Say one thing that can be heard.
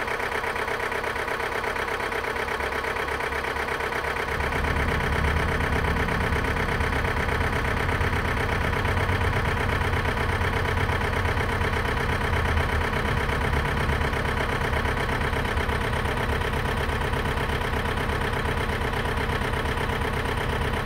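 A power tool buzzes steadily.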